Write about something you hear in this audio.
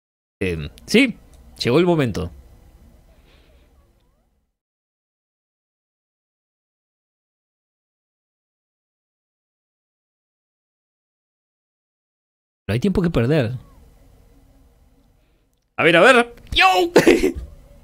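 A young man speaks with animation close to a microphone, in short bursts with long pauses.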